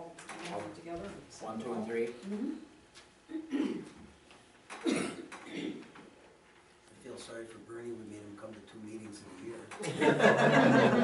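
Elderly men talk calmly, heard from a distance.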